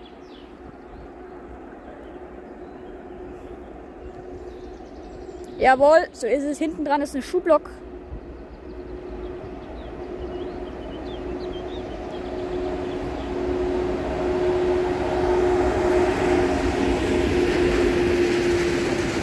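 A freight train approaches, its engine rumbling louder as it nears.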